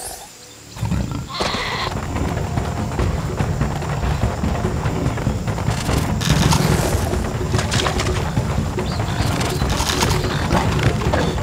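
Paws patter quickly over dirt.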